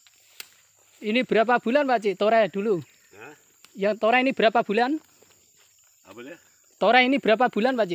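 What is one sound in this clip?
An older man speaks nearby in a calm, animated voice.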